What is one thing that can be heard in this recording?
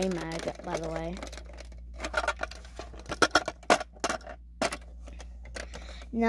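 A plastic toy blaster clicks and clacks as it is handled.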